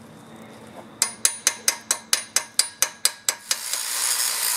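A hammer chips at metal with quick sharp knocks.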